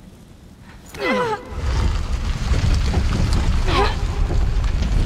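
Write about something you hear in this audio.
A man grunts and shouts with strain.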